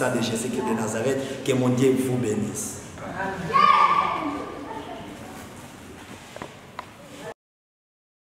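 A man speaks with emotion close by.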